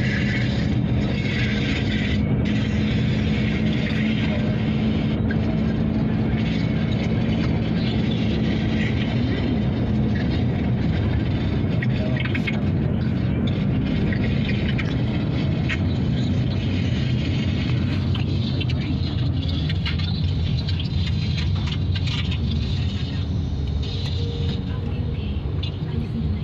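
Tyres roar on the road as the car drives along.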